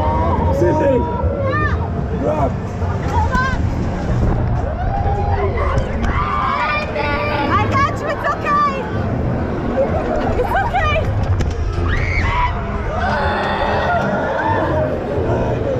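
Young people scream and shout excitedly up close.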